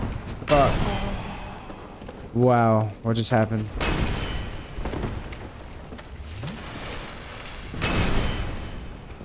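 Heavy sword blows strike with loud impacts.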